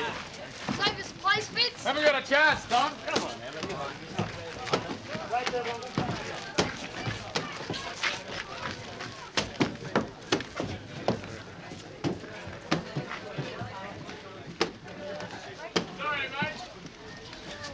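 Boys chatter and call out nearby.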